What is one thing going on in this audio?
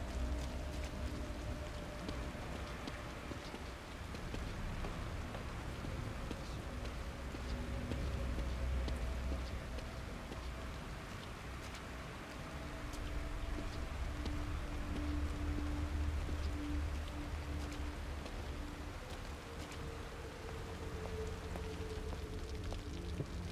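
Footsteps walk slowly on wet pavement and stone steps.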